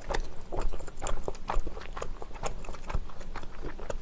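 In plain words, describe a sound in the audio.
Chopsticks click against a plate.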